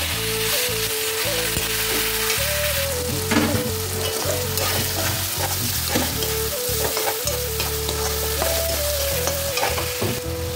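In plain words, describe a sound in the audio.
A metal spatula scrapes and stirs food in a pan.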